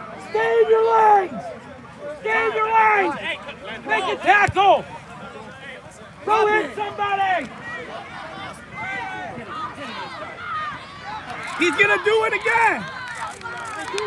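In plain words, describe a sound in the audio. Men shout loudly close by outdoors.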